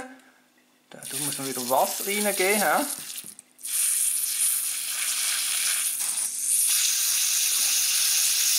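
A spray bottle hisses as it mists water.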